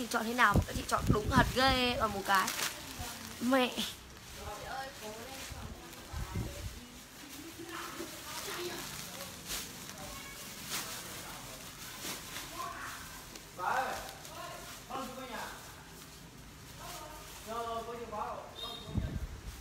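A young woman talks with animation close to a microphone.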